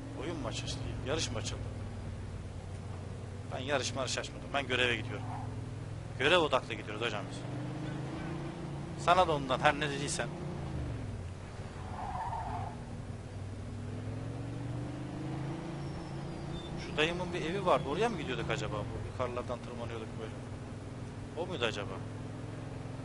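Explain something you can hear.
A man talks calmly and close to a microphone.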